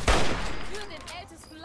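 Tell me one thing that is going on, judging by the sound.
A rifle fires a single loud shot that echoes.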